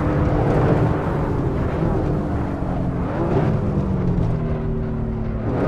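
A racing car engine drops in pitch as the car brakes for a bend.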